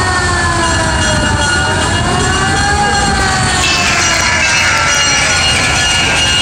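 An old truck engine rumbles and whines as it drives slowly past.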